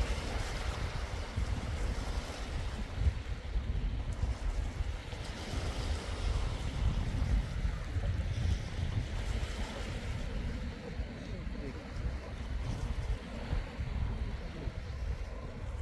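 Wind blows and rumbles outdoors.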